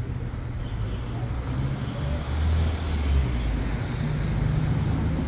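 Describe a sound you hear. City traffic hums steadily along the street.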